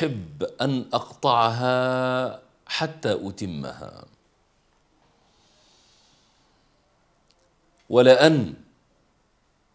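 A man speaks with feeling into a close microphone, pausing between phrases.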